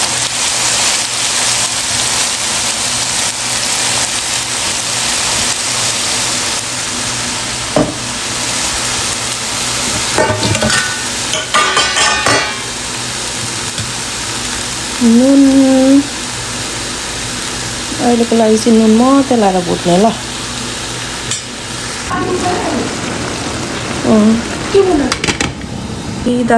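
Food sizzles and crackles in a hot frying pan.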